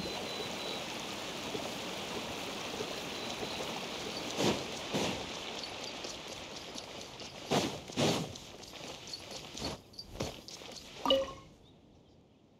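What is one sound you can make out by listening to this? Footsteps patter quickly on stone paving.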